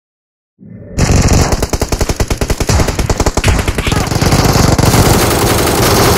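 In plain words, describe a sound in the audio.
Gunfire rattles in rapid bursts from a game.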